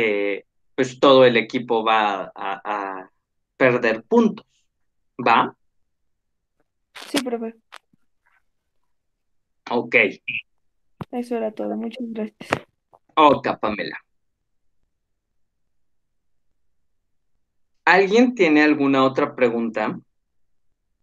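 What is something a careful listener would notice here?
A man speaks calmly through an online call.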